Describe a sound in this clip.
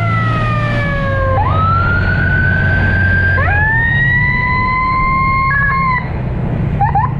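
A motorcycle engine revs up and down through the gears, close by.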